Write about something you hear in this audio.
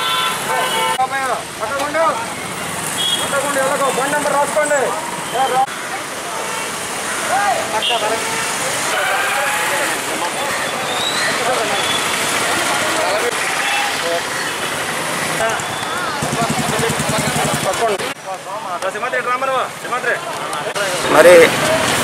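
Men talk loudly and with animation outdoors on a busy street.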